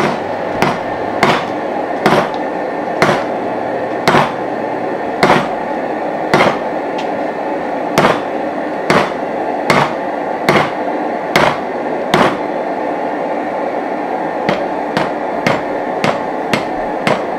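A hammer strikes hot metal on an anvil with steady, ringing blows.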